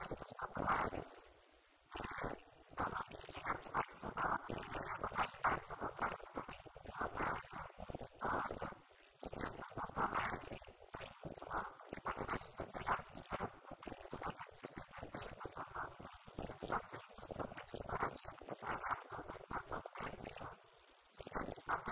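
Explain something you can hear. A young woman speaks steadily into a microphone, heard through loudspeakers in a room.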